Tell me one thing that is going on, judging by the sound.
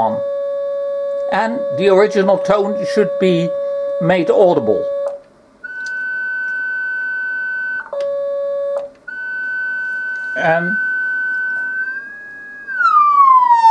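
A steady electronic tone hums from a speaker, jumping in pitch now and then.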